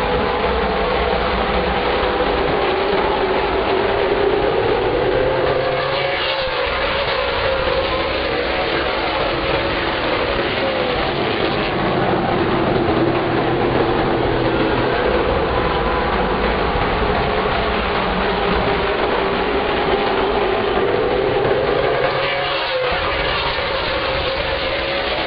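Many race car engines roar loudly and steadily around a track outdoors.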